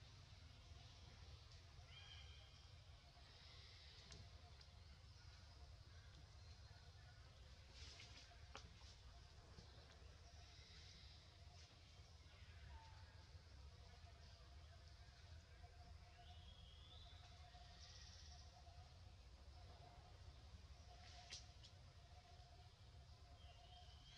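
A baby monkey suckles softly, close by.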